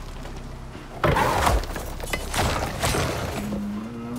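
Heavy blows strike an animal with loud thuds.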